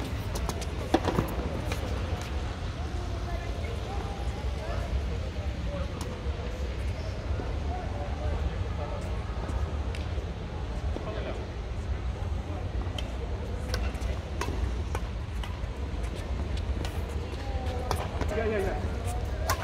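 Rackets strike a shuttlecock with sharp taps.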